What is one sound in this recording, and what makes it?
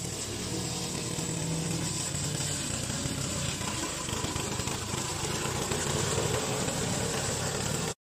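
A mower engine runs steadily.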